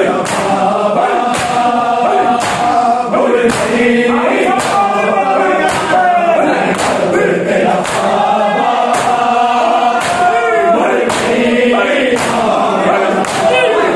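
Men beat their bare chests in a steady rhythm, each slap a loud, sharp smack.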